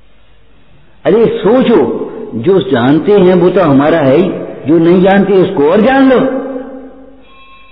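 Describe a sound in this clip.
A middle-aged man speaks calmly and expressively into a microphone.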